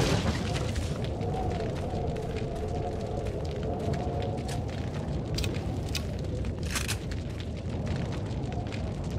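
Footsteps crunch steadily on rough ground.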